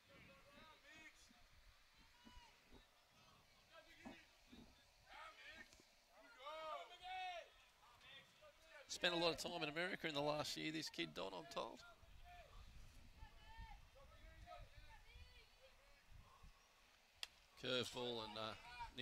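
Young men shout and chant encouragement outdoors.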